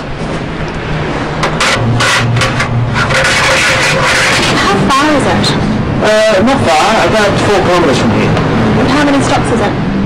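A young woman speaks nearby.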